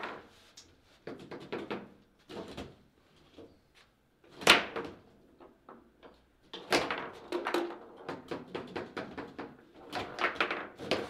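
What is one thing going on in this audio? Table football rods slide and clack in their bearings as players move them.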